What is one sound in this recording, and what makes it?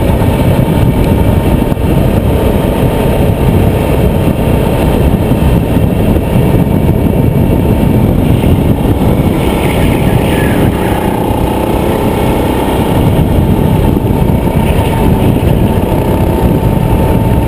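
A go-kart engine buzzes loudly and steadily close by.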